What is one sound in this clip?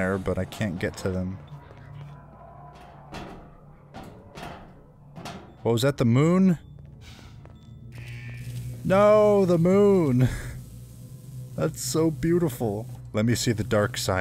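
A young man talks with animation, close to a headset microphone.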